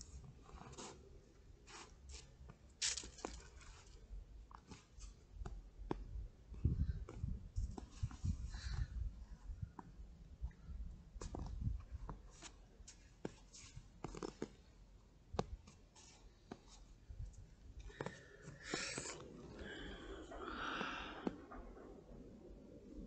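Footsteps crunch in snow close by.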